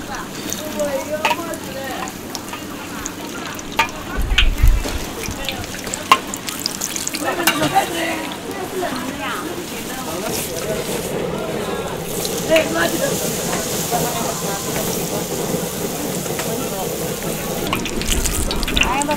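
Hot oil sizzles and bubbles steadily in a pan.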